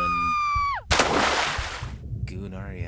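A body splashes loudly into water.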